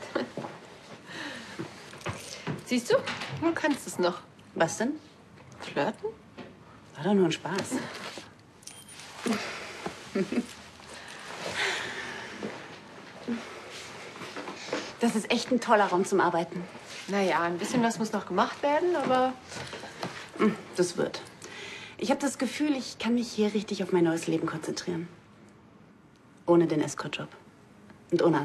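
A second young woman answers in a soft voice, close by.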